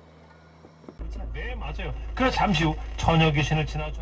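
A car radio plays from loudspeakers.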